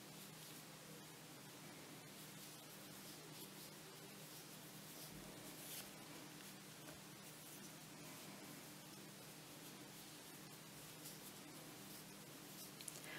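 A crochet hook and yarn rustle softly.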